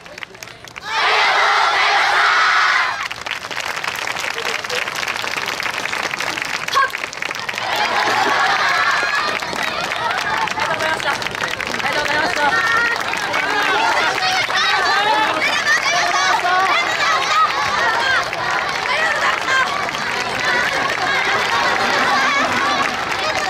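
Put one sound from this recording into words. A large group of young dancers chants and shouts loudly in unison outdoors.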